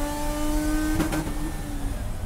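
A gear shift clunks once.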